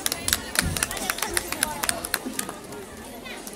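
Hand drums are struck in quick, sharp beats.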